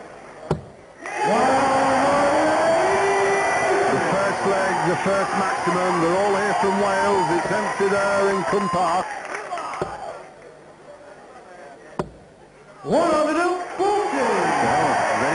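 A large crowd sings and cheers loudly in a big echoing hall.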